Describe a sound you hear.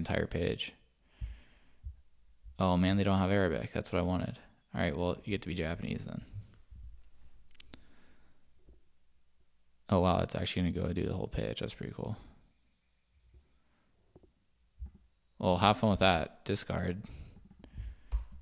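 A young man speaks with animation into a close microphone, pausing now and then.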